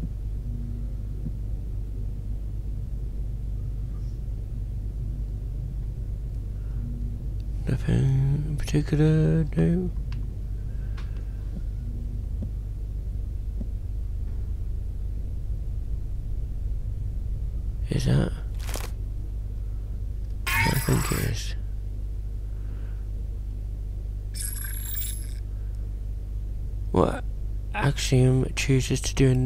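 A low electronic hum drones steadily throughout.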